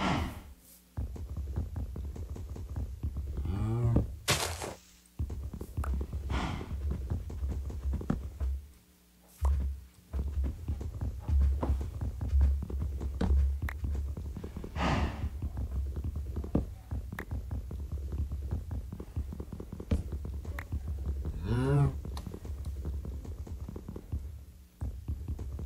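Blocks crunch and crumble in quick repeated digging sounds.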